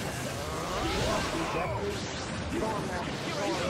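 An energy blast crackles and whooshes.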